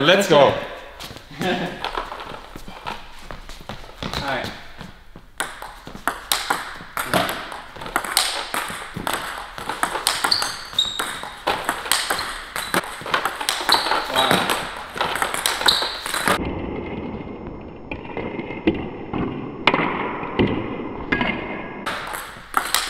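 A table tennis ball clicks back and forth on paddles and the table in an echoing hall.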